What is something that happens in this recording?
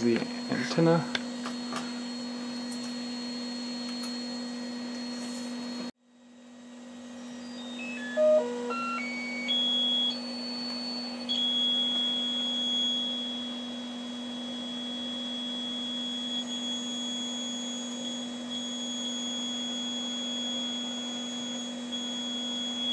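An electrical hum drones steadily.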